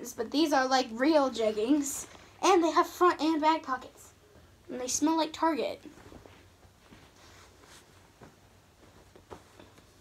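Fabric rustles as clothes are shaken out and folded.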